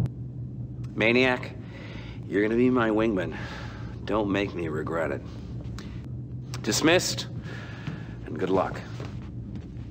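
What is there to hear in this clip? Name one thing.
A man speaks calmly and firmly.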